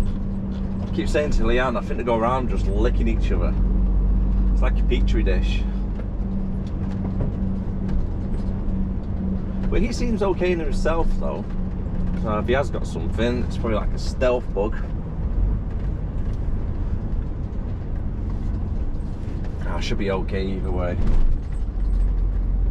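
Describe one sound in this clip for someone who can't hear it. A large vehicle's engine hums steadily as it drives along a road.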